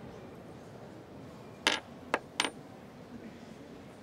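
Metal rings clink on a wooden counter.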